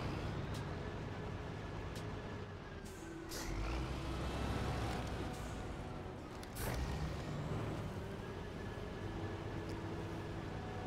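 An off-road truck engine rumbles and revs steadily.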